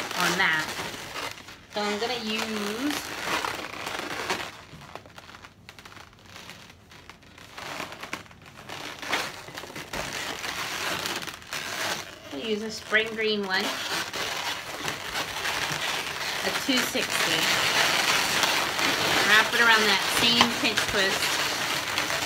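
Rubber balloons squeak sharply as they are handled and rubbed together.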